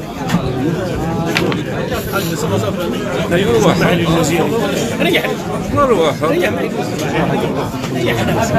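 A large crowd chants and murmurs outdoors.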